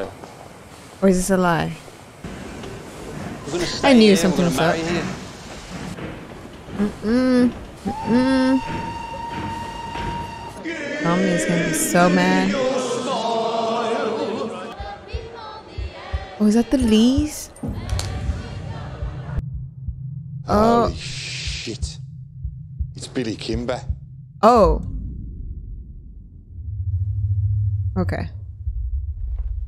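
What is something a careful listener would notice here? A young woman talks casually and laughs close to a microphone.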